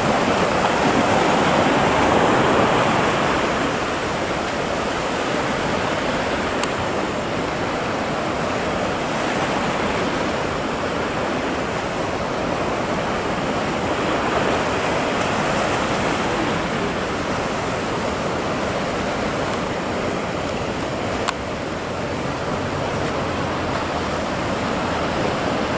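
Waves roll and crash steadily in the open sea.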